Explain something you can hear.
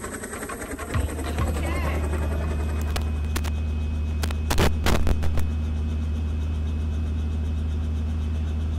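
A helicopter engine hums steadily nearby.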